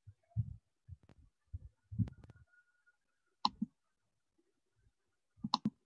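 A woman speaks calmly through an online call.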